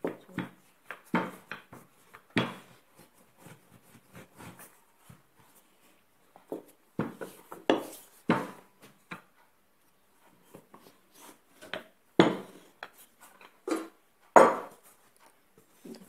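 A wooden rolling pin rolls and knocks on a table.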